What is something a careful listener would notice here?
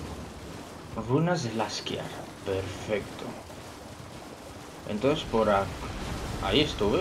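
A young man speaks with animation through a headset microphone.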